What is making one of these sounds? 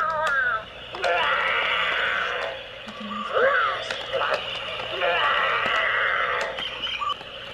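A toy dinosaur makes electronic chomping and growling sounds.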